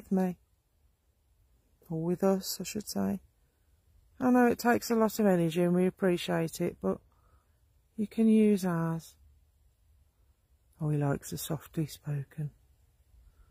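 An elderly man speaks close by, calmly, in short bursts with pauses.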